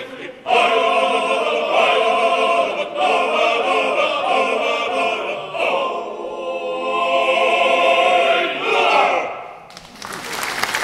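A men's choir sings together in a large echoing hall.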